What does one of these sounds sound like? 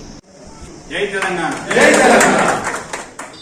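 A crowd claps and cheers loudly.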